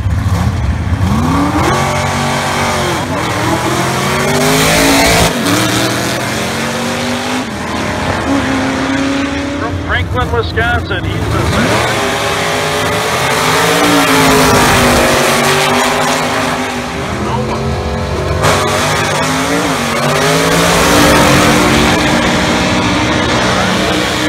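Loud racing engines roar and rev as cars launch down a drag strip.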